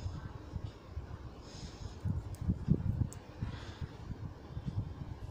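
Knitting needles click and tap softly against each other.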